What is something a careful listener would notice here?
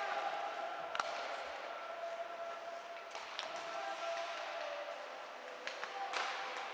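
Hockey sticks click against a puck.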